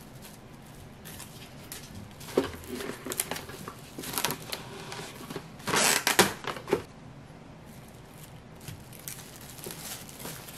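Plastic cling wrap crinkles and rustles as hands fold it.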